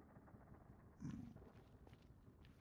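A creature grunts nearby.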